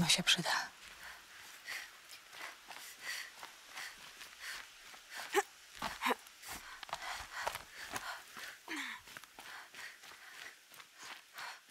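Footsteps crunch quickly over dry ground and gravel.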